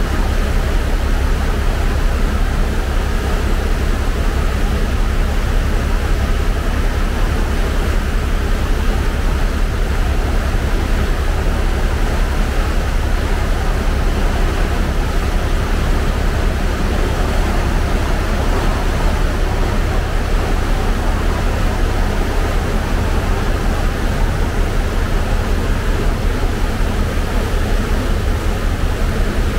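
Wind buffets steadily outdoors.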